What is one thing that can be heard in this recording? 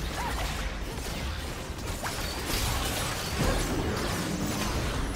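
Video game spells whoosh and blast in a hectic battle.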